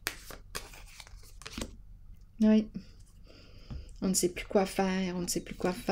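A card slides softly onto a table.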